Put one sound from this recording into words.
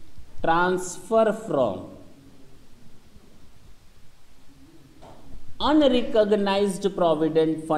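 A man lectures calmly and clearly, close by.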